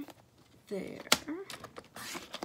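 A paper trimmer blade slides along with a click.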